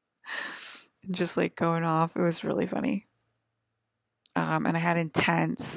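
A woman speaks close to a microphone in short bursts.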